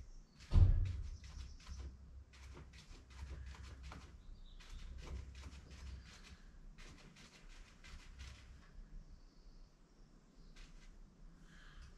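A marker squeaks in short strokes as someone writes.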